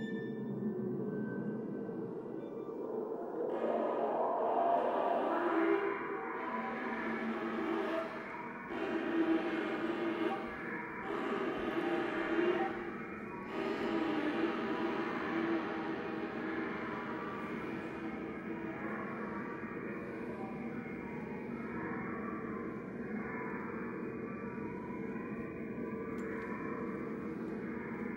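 A small ensemble of instruments plays music in a large echoing hall.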